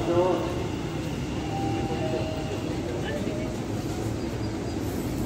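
A train's wheels screech on the rails.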